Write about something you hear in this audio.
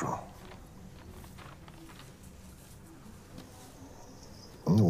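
Paper rustles as a letter is handled.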